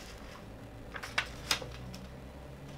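A page of a book rustles as it turns.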